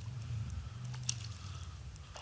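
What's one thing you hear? A lure splashes into calm water.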